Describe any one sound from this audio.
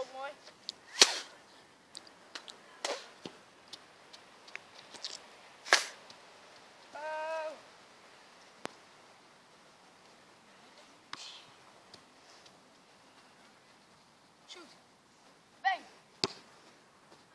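A football is kicked with sharp, hollow thuds.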